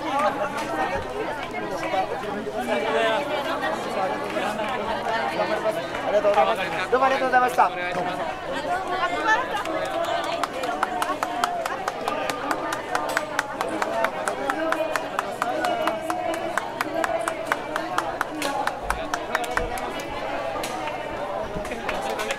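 A young man talks warmly with people close by.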